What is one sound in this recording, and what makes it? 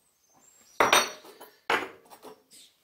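A metal part knocks against a workbench.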